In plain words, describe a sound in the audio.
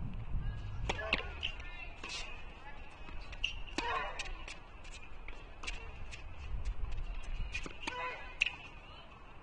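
A racket strikes a tennis ball with sharp pops.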